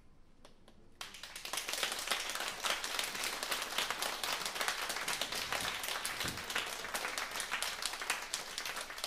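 A band plays lively jazz.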